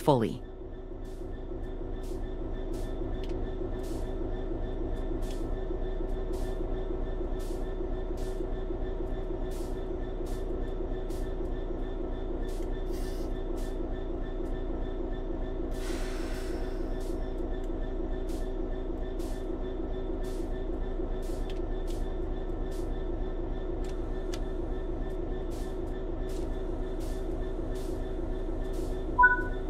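Train wheels click rhythmically over rail joints.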